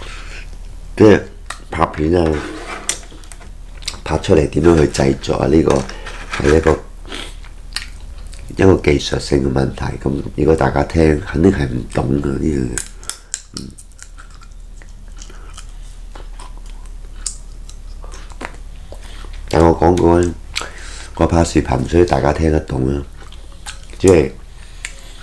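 A man talks calmly and close by, in bursts with pauses.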